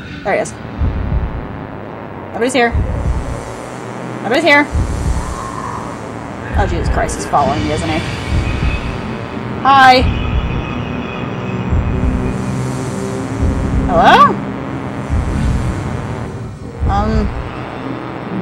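A young woman speaks quietly and calmly into a nearby microphone.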